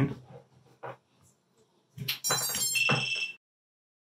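A connector clicks as a plug is pushed into a socket.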